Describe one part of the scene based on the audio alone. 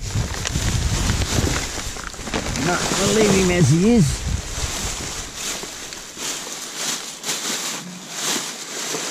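Plastic bags and wrappers rustle and crinkle as a gloved hand rummages through trash.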